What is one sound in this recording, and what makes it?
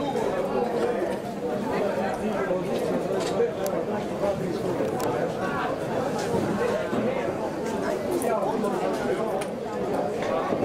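A crowd of spectators chatters and calls out nearby.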